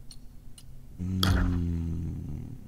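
A menu chime rings out with a low, humming swell that slowly fades.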